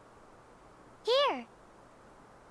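A young woman speaks a short word calmly.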